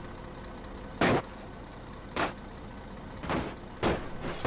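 Metal ramps clank sharply against the road.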